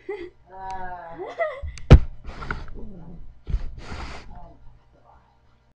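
A young girl speaks animatedly and laughs close by.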